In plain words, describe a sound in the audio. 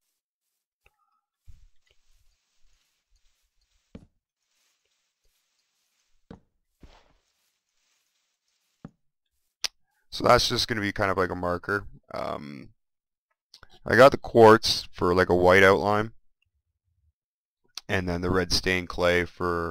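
Blocks are set down with soft, dull knocks.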